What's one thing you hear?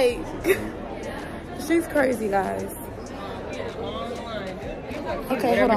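A young woman talks cheerfully and close up.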